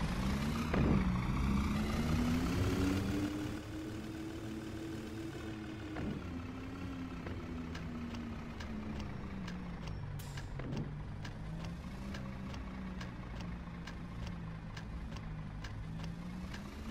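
A city bus engine drones, rising and falling in pitch as the bus speeds up and slows.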